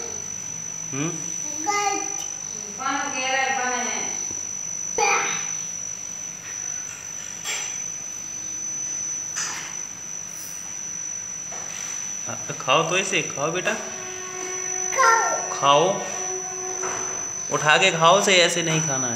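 A young boy talks and sings in a high voice close by.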